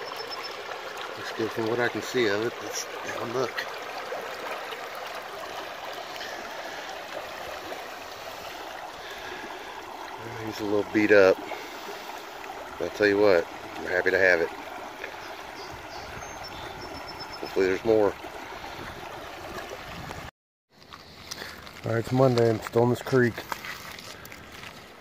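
Shallow water ripples and trickles over stones nearby.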